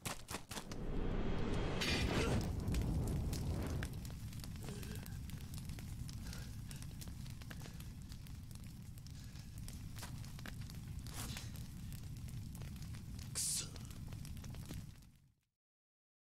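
A large fire roars and crackles.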